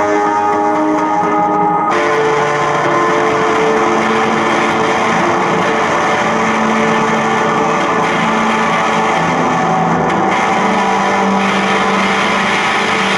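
A tuba plays long low notes.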